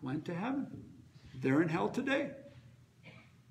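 A middle-aged man speaks in a calm, measured voice close by.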